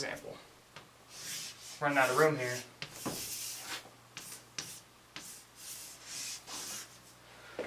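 Chalk scratches and taps on a board.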